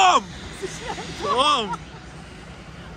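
A woman laughs with delight close by.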